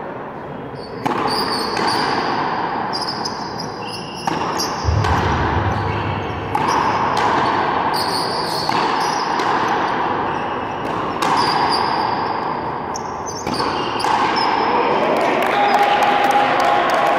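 A frontenis ball smacks against a wall in a large echoing court.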